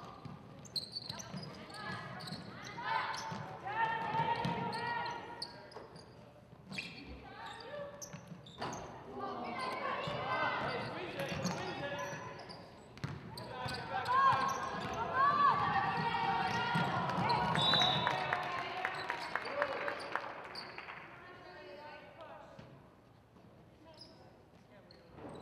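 Spectators chatter and call out nearby.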